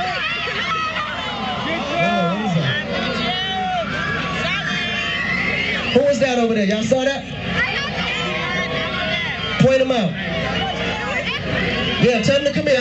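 A young man sings loudly into a microphone over loudspeakers outdoors.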